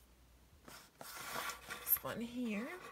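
A paper card rustles as it is laid down onto carpet.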